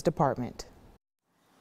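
A woman speaks clearly and calmly into a microphone.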